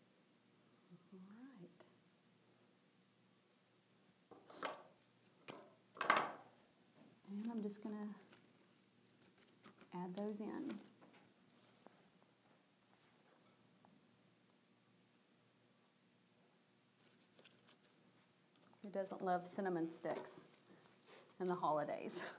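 A middle-aged woman talks calmly into a close microphone.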